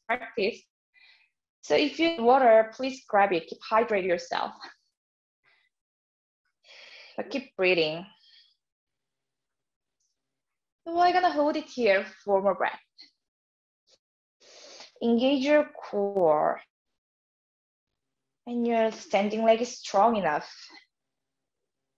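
A young woman speaks calmly and clearly into a close microphone, in short phrases with pauses.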